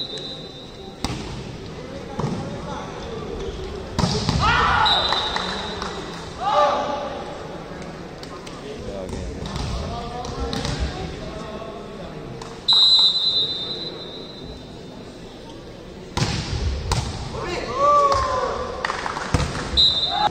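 A volleyball is struck hard and thuds in a large echoing hall.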